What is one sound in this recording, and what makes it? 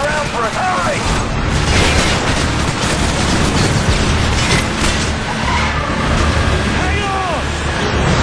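A vehicle engine rumbles loudly.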